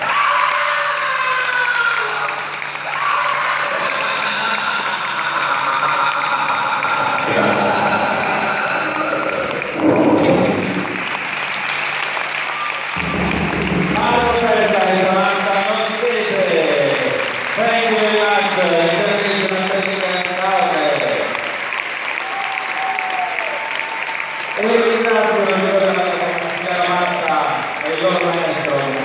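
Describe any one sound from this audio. A large crowd cheers and chatters in a big echoing hall.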